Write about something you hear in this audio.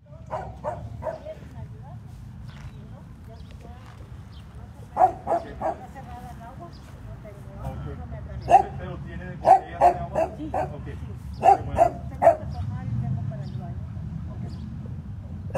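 An elderly woman talks with animation nearby.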